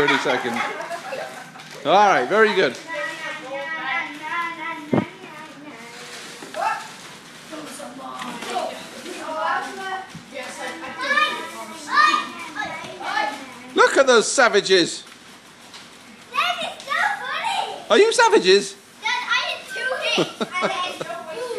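Young children shout and squeal excitedly close by.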